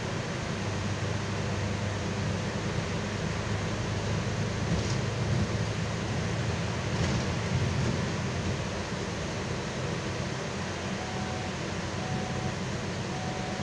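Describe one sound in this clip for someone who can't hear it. Tyres roll over a wet, slushy road.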